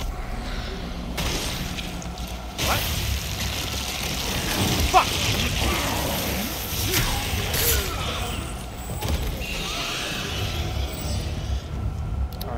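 Steam hisses loudly.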